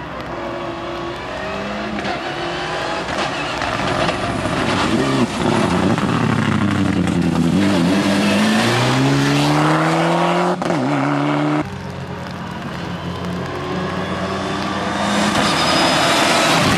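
A rally car engine roars close by, revving up and down through the gears.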